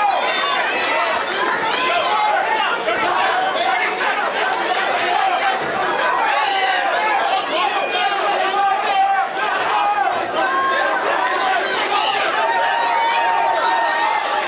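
Punches and kicks thud against a fighter's body.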